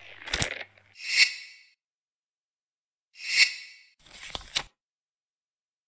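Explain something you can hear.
Short electronic chimes sound as a game menu turns.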